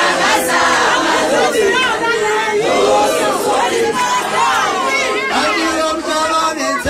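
A crowd of women sings along loudly and excitedly.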